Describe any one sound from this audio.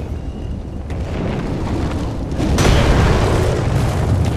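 A large winged creature lands with a loud roaring rush.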